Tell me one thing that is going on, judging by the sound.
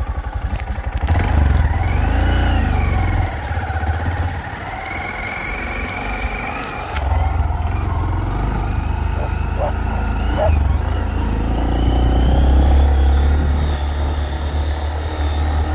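A motorcycle engine revs and roars as it rides across grass.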